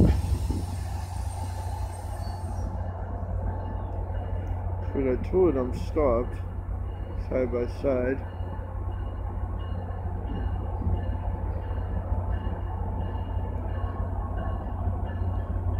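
A train rumbles steadily past nearby.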